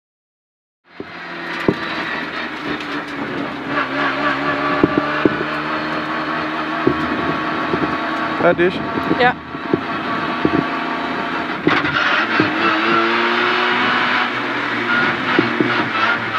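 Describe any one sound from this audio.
Gravel and loose stones rattle under the tyres and against the car.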